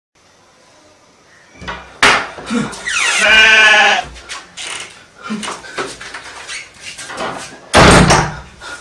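A door latch clicks and a wooden door creaks open and shut.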